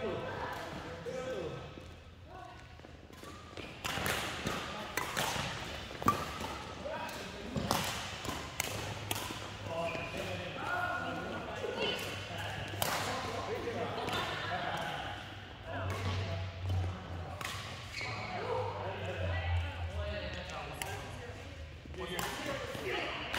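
Rackets strike a shuttlecock with sharp pops, over and over.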